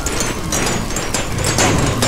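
Blocks crack and break with short crunching knocks.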